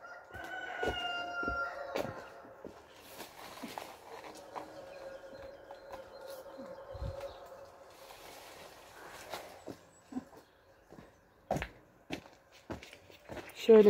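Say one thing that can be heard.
Leaves rustle softly in a light breeze.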